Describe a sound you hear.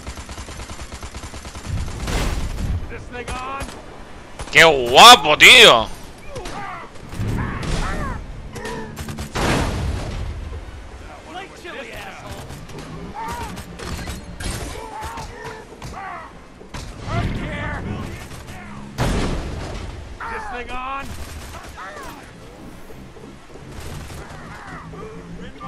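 Laser guns fire in rapid zaps.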